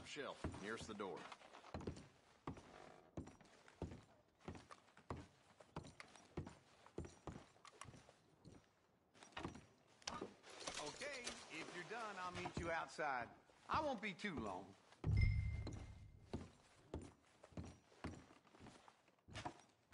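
Boots thump steadily on a wooden floor.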